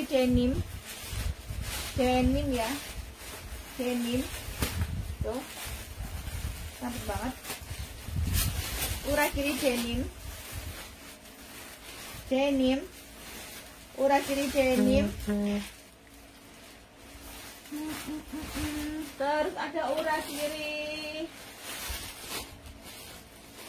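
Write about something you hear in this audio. Fabric rustles as clothes are handled.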